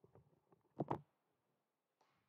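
A man handles something close by with a loud thump.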